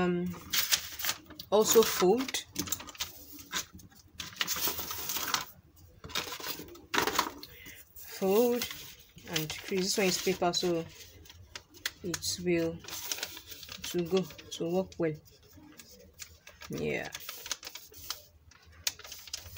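Stiff paper rustles and crinkles as it is handled and folded.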